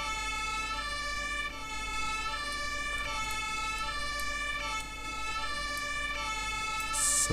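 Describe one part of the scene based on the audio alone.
An ambulance siren wails steadily in a two-tone pattern as the vehicle drives.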